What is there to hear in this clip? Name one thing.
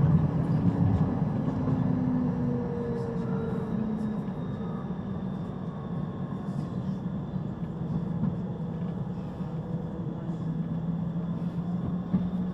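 A standing tram hums steadily with a low drone, echoing in a large enclosed space.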